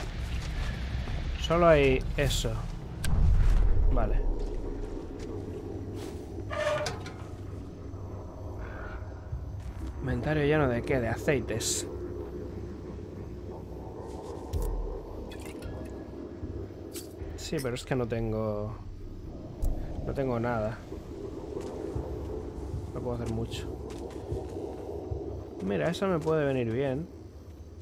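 Footsteps crunch softly on grass and dirt.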